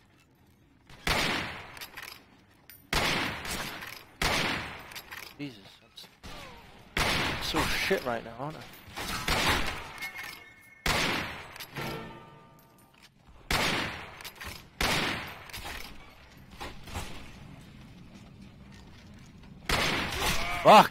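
Pistol shots ring out sharply, one at a time, with a short echo.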